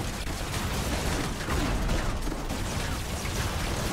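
Heavy guns fire in rapid bursts.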